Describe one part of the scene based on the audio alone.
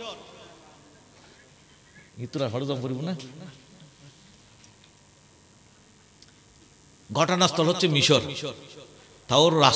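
An elderly man preaches with animation through a microphone and loudspeakers, in short bursts with pauses.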